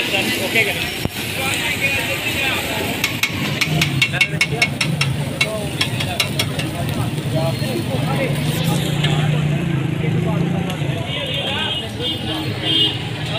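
Patties sizzle on a hot griddle.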